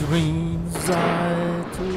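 Waves wash against rocks below.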